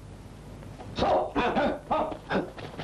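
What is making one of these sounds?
A man shouts a short command.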